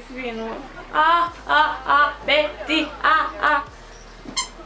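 A young woman sings loudly in a high voice.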